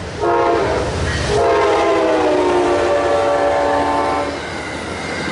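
A train horn blares loudly close by.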